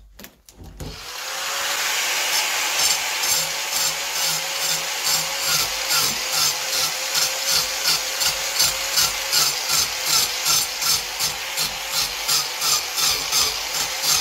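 A power grinder whirs loudly with a steady high whine, pulsing in a quick rhythm.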